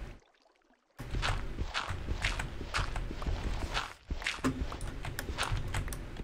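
Gravelly crunching sounds of digging into earth repeat in quick succession.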